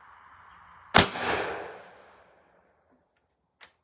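A rifle fires a loud shot that echoes outdoors.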